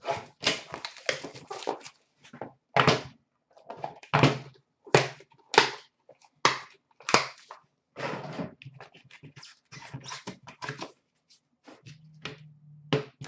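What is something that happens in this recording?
Small cardboard boxes tap and scrape against a glass surface.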